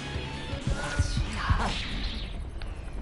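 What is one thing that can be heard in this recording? An energy blast bursts with a rushing roar.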